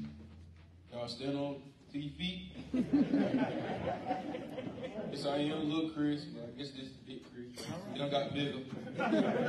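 A man speaks loudly and with fervour through a microphone in an echoing hall.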